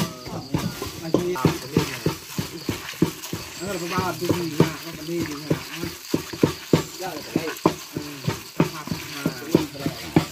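A plastic bag crinkles as hands squeeze food in a bowl.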